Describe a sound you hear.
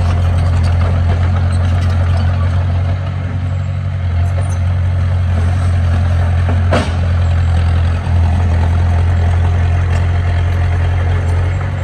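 A bulldozer's tracks clank as the machine pushes soil.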